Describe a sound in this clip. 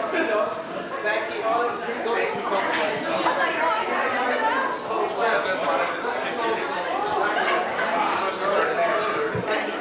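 A group of men and women chatter all around in a busy room.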